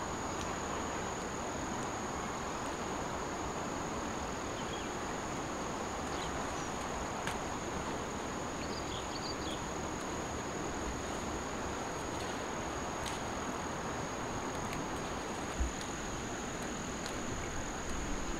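Leafy plants rustle and snap as a woman picks them by hand.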